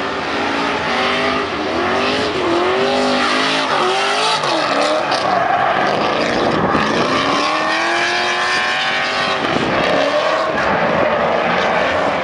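Tyres screech as a car slides around a track.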